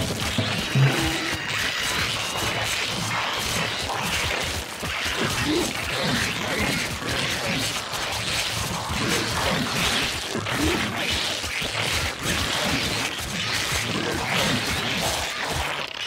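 Game creatures fight with repeated hits and thuds.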